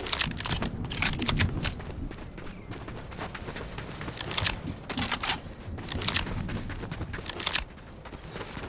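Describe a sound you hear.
Footsteps crunch quickly over dirt.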